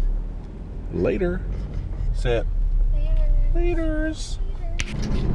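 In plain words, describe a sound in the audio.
A young woman laughs and talks.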